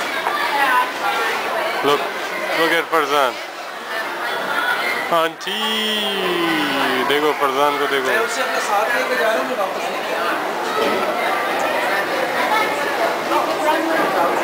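Young children shout and squeal nearby.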